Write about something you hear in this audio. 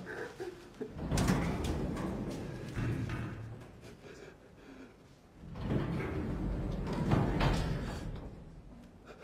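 A young man sobs and gasps close by.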